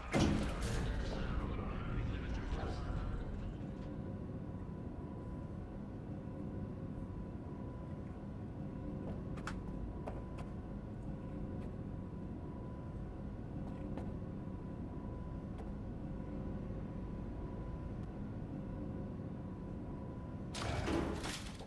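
An elevator hums steadily as it moves.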